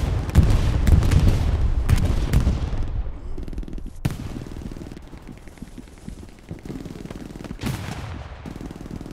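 Wind rustles through tall grass.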